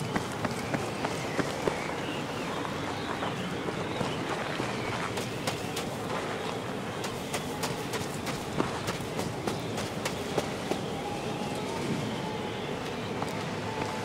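Strong wind blows steadily in a snowstorm.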